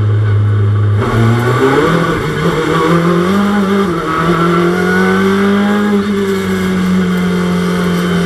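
A racing car engine revs up and down.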